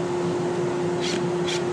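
A cordless drill whirs briefly, driving a screw.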